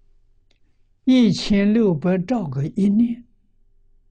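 An elderly man speaks calmly and expressively into a nearby microphone.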